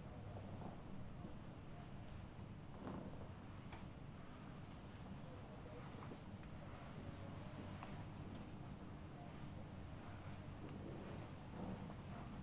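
Hands press and rub on a cloth, making soft rustling.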